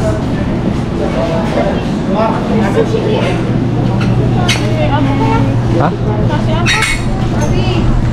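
A shopping cart rattles as it rolls over a tiled floor.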